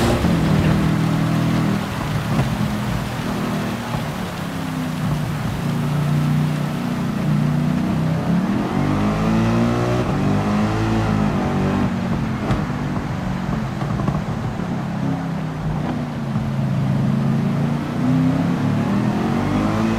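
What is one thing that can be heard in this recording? A racing car engine roars and shifts gears at high speed.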